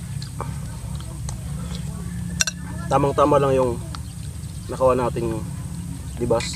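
A metal spoon clinks against a glass bowl.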